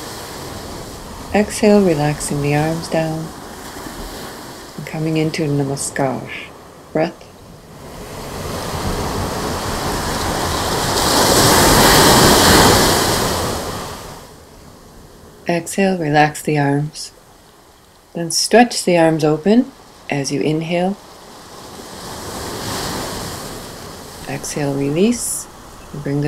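Ocean waves break and wash onto a beach, swelling and fading.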